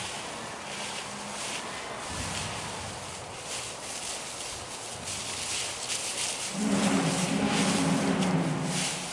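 Plastic rakes rustle and scrape through dry leaves.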